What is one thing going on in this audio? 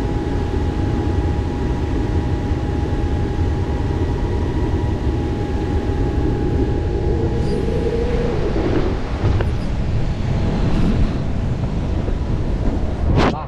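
Wind rushes loudly past a glider in flight.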